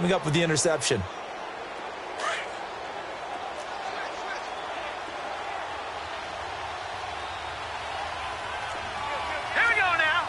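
A stadium crowd murmurs and cheers steadily in a large open space.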